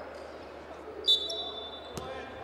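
A referee blows a sharp whistle blast.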